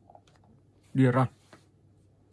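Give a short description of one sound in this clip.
A short chime plays from a tablet's speaker as an app opens.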